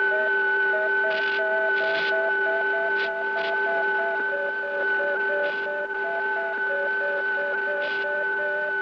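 Electronic beeps pulse in a quick, even rhythm.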